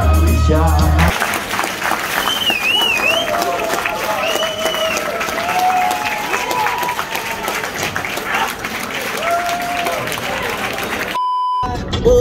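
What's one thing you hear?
A crowd cheers and whistles in a large echoing hall.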